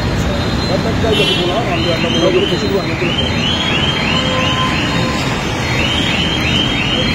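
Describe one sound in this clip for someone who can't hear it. Traffic rumbles steadily nearby outdoors.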